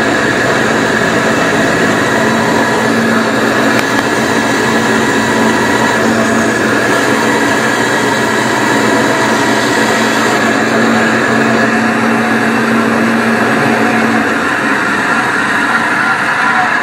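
A band saw motor hums and whirs steadily.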